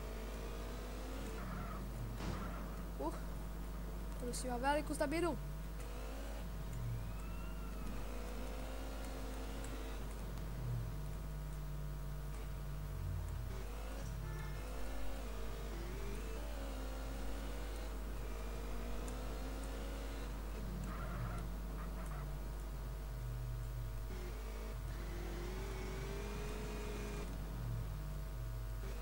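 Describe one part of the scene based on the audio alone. A motorbike engine hums and revs.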